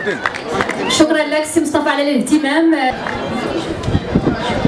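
A woman speaks loudly into a microphone over a loudspeaker.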